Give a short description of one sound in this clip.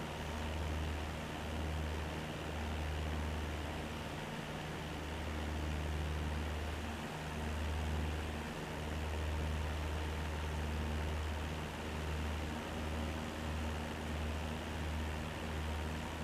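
A small propeller plane engine drones steadily.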